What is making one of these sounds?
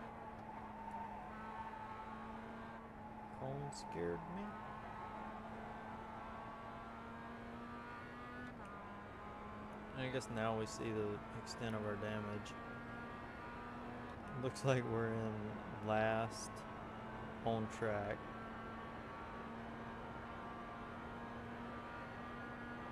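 A racing car engine drones steadily at high revs.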